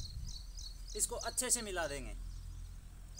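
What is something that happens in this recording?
A young man speaks briefly and with animation, close by.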